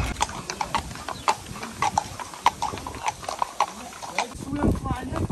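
Horse hooves clop on a hard road.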